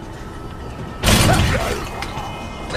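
Wooden double doors burst open with a loud bang.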